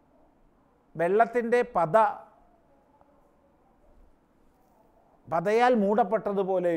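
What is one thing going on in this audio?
An elderly man speaks calmly and clearly into a microphone.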